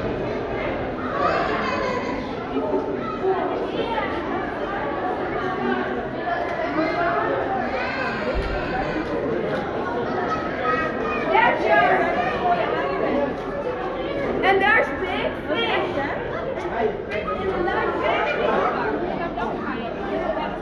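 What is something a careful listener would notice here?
A crowd of adults and children chatters and calls out nearby in an echoing space.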